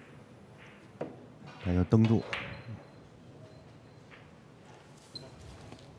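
Pool balls knock together and roll across the table.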